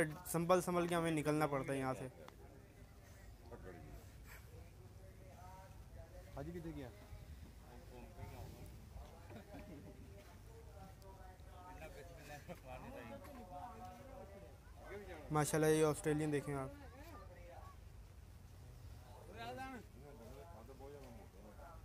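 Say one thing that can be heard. Men talk calmly nearby outdoors.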